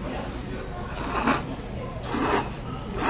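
A person slurps noodles loudly.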